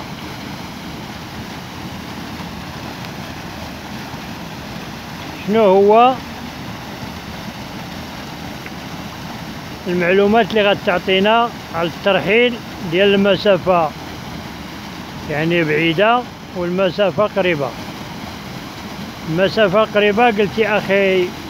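Water pours steadily over a small weir and rushes along a stream.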